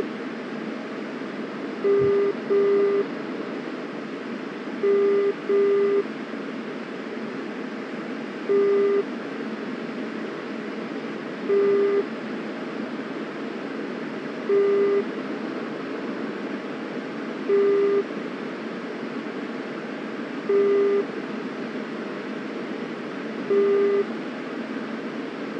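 A jet engine roars steadily, heard from inside the cockpit.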